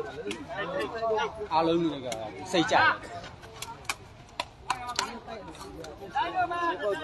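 A crowd of young men shouts and cheers nearby outdoors.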